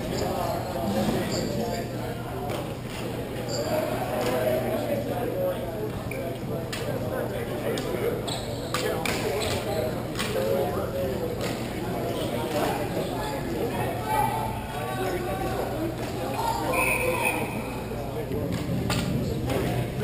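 Hockey sticks clack and scrape on a hard rink floor.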